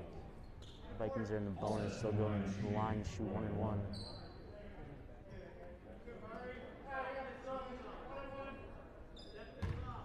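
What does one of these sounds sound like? Young men shout across a large echoing gym.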